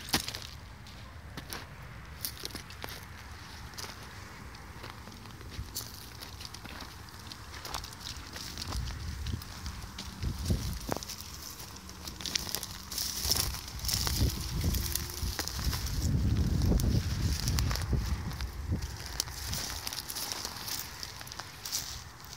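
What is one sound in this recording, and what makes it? Footsteps crunch on dry dirt and twigs.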